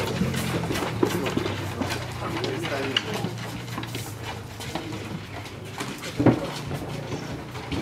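A heavy wooden crate scrapes and bumps as it is lifted and carried.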